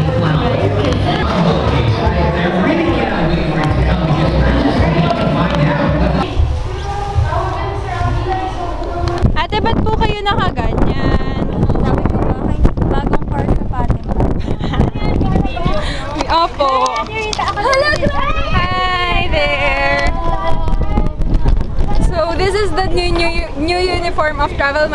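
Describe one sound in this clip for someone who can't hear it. Young women chatter and laugh close by.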